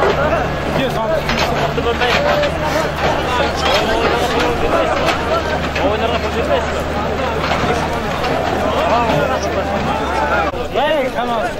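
A tractor engine idles with a low steady rumble.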